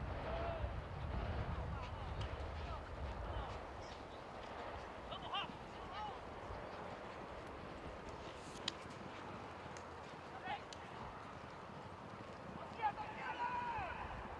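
Horses gallop over grass, their hooves thudding faintly in the distance.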